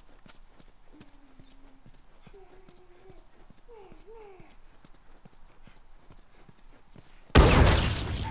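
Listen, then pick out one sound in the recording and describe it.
Footsteps scuff steadily on hard ground.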